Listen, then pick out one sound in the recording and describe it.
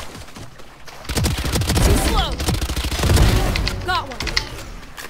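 Rifle shots fire in rapid bursts.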